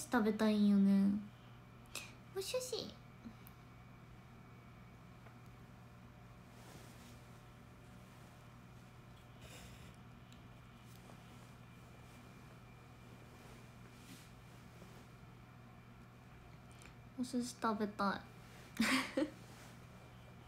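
A young woman speaks softly and close to a microphone, in short bursts with long pauses.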